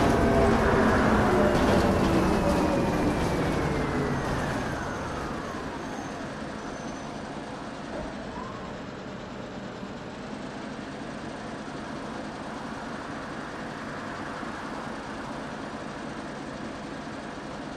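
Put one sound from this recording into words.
A bus engine rumbles and winds down as the bus slows.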